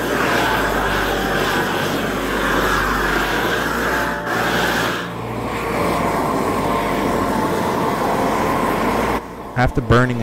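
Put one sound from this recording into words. A propane torch roars steadily.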